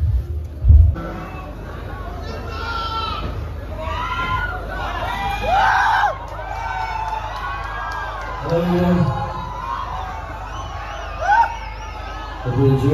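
A band plays music through loudspeakers.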